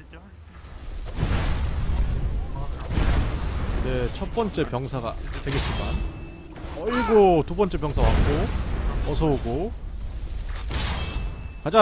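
Fire spells roar and burst in loud blasts.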